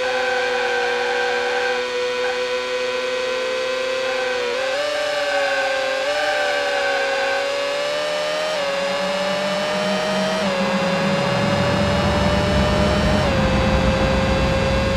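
A racing car engine whines steadily, rising and dropping in pitch as it shifts gears.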